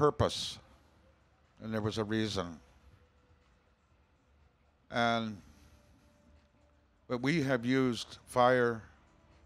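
A man speaks slowly into a microphone, heard through loudspeakers, with pauses between phrases.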